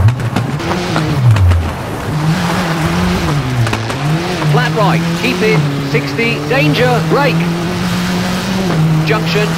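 A rally car engine roars and revs up and down through gear changes.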